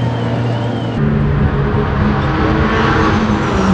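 A race car engine screams at speed on a track.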